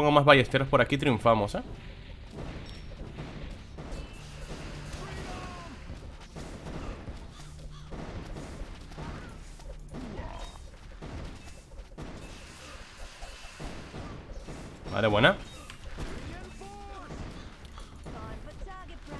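Cartoonish video game battle effects clash and pop.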